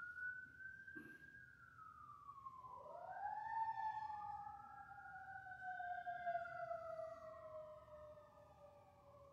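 An electronic instrument plays slow, smoothly gliding tones.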